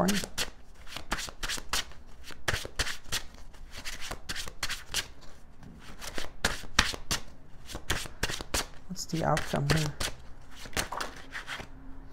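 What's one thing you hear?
Cards riffle and slap quickly as they are shuffled.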